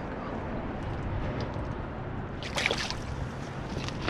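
Water splashes against a small boat.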